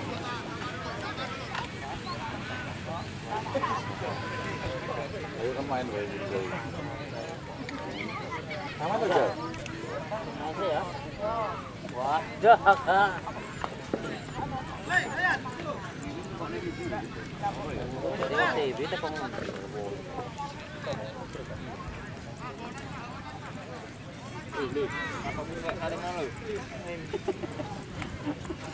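A crowd of spectators chatters in the distance.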